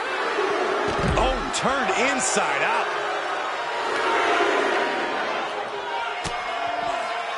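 A body thuds heavily onto a hard floor.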